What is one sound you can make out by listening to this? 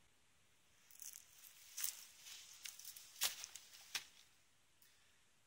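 A backpack rustles and thumps as it is set down on a rock.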